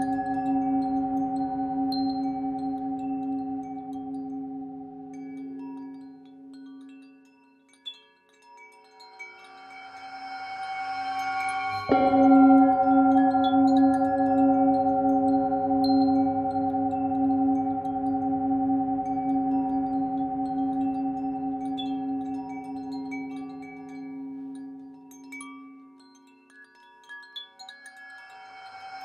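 A singing bowl rings with a long, humming tone that swells and slowly fades.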